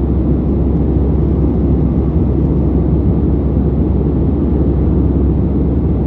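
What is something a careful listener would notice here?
A jet engine roars steadily in a low, constant drone.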